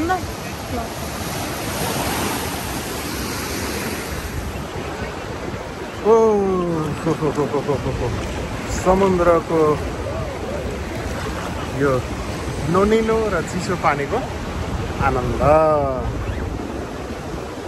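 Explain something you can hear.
Waves wash and break steadily outdoors.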